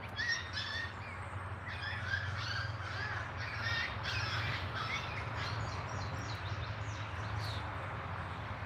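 Young birds peep and chirp close by.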